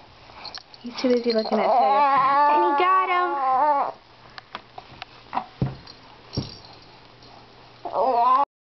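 A baby coos and squeals up close.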